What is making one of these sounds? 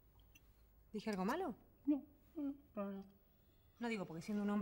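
A woman speaks briefly nearby.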